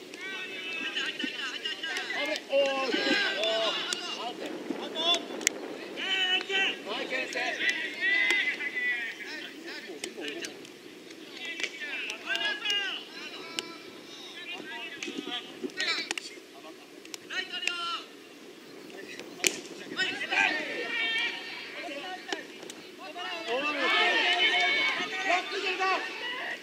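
Young players shout and call out to each other outdoors.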